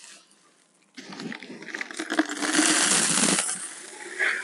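Gravel pours out of a sack onto the ground.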